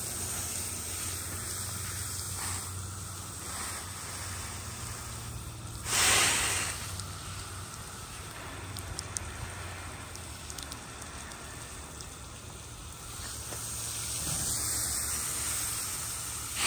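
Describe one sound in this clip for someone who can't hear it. A hose nozzle sprays water in a steady hiss.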